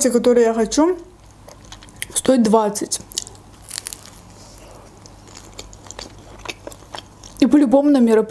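Crisp food crunches and crackles as a young woman chews close to a microphone.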